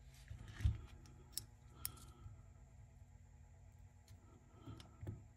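Small plastic parts click and scrape as hands handle a mechanism.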